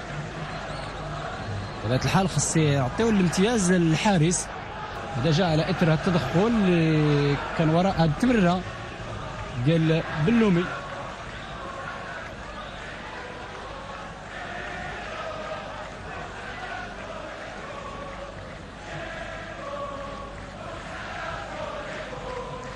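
A stadium crowd murmurs in the distance.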